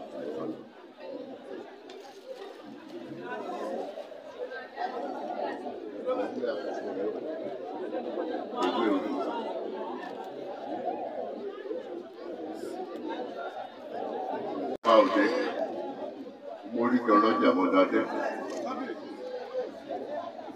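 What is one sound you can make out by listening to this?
A crowd of men and women chatter and murmur close by.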